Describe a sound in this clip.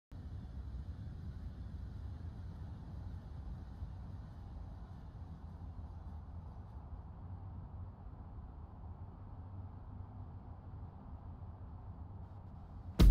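Vehicle engines hum steadily as traffic passes on a busy road.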